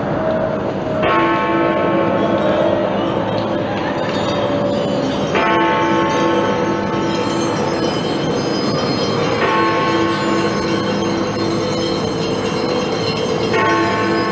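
A large bell tolls slowly, each stroke ringing out and fading.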